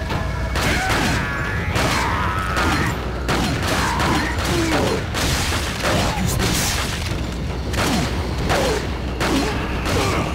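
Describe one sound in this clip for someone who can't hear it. Gunshots bang sharply, one after another.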